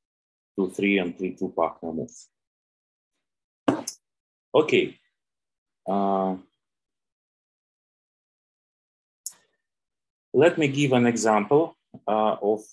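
A man speaks calmly in bursts through a microphone, as if on an online call.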